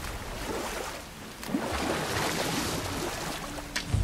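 Oars splash through water.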